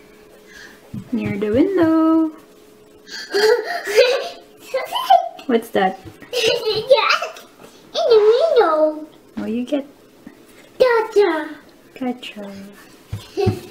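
A young child talks in a high voice, close by.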